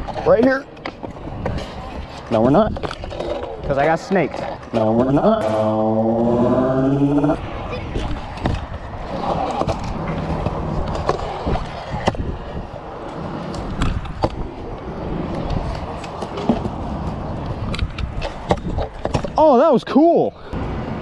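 Scooter wheels roll and rumble over smooth concrete.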